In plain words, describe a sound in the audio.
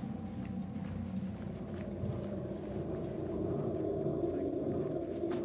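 Footsteps run across stone paving.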